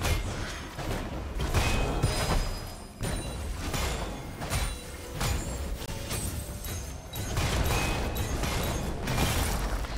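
Video game spells whoosh and crackle during a fight.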